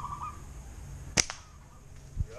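A slingshot's rubber band snaps as it is released.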